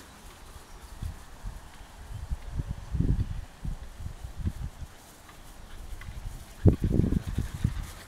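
Puppies scamper and tumble on grass.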